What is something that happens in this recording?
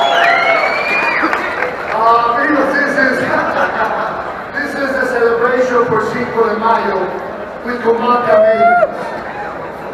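A man announces loudly over a loudspeaker in a large echoing hall.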